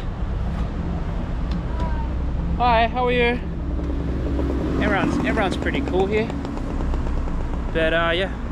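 Cars pass by on a road nearby.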